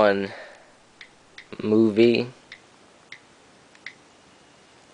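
A touchscreen keyboard clicks softly as keys are tapped.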